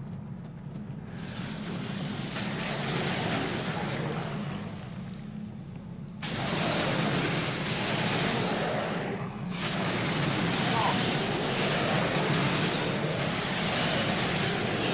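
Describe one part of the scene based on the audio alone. Battle sounds and spell effects clash from a game.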